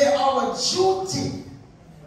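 A woman speaks loudly into a microphone over loudspeakers.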